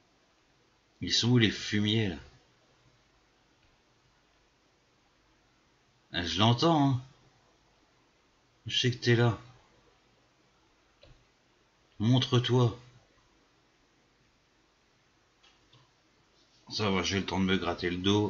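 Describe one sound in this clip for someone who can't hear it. A man speaks calmly into a close microphone in short bursts.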